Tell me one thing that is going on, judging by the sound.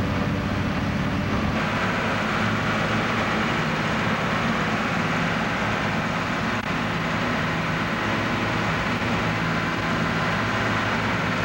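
A slinger conveyor belt runs with a steady mechanical roar.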